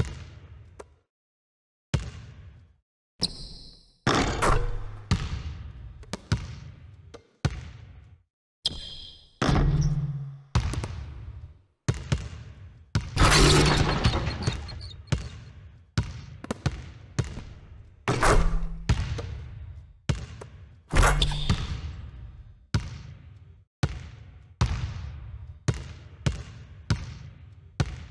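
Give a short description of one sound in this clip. A basketball bounces on a hard court, echoing through a large empty hall.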